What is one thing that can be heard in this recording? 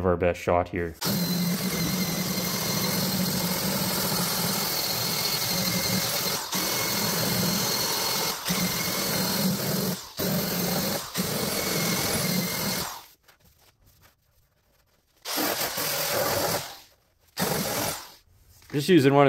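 A power sander whirs steadily as it grinds metal, stopping and starting in short bursts.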